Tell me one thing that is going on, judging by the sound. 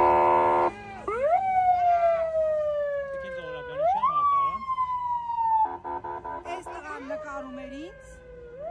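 A police siren wails close by, rising and falling.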